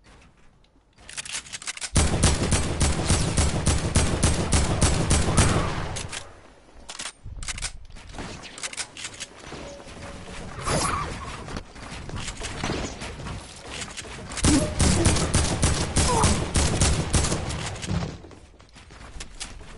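Wooden building pieces clatter rapidly into place in a video game.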